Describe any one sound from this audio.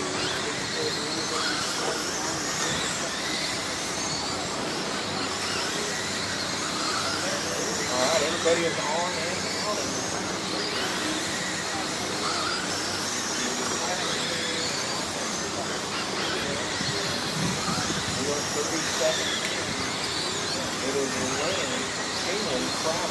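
Tyres of toy cars skid and scrape on loose dirt.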